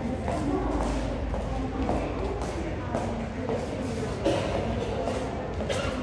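A crowd of people chatters nearby in an echoing archway.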